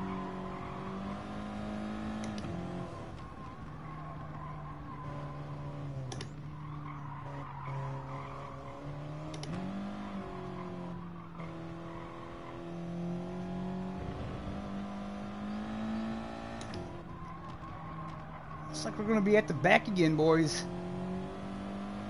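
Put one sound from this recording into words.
A racing car engine drones steadily, rising and falling in pitch as it shifts gears.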